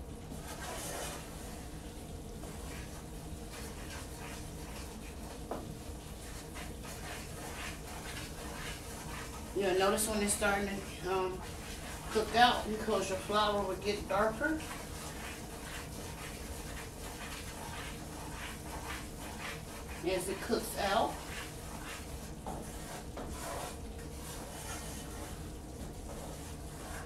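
A wooden spoon scrapes and stirs in a pan.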